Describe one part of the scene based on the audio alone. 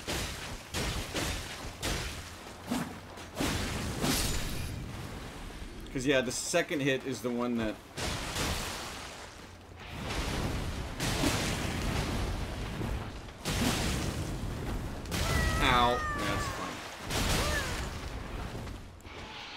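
Sword strikes clash and thud in quick bursts.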